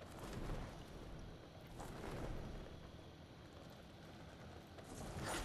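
Wind rushes steadily past a parachute gliding down.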